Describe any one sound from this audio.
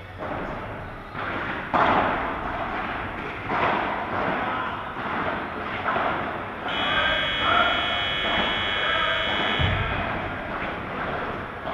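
A ball bounces off the court and glass walls.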